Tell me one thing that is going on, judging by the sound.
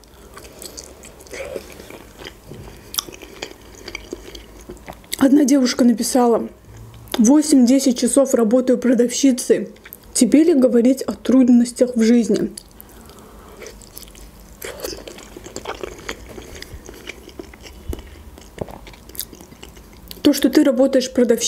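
A young woman crunches and chews crisp food close to a microphone.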